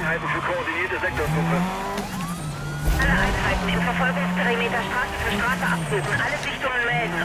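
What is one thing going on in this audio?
A car engine hums steadily and revs as the car speeds up.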